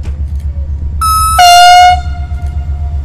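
A train horn blares loudly, first a short blast and then a longer one.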